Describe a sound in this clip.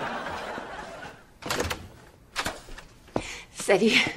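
A wooden door opens.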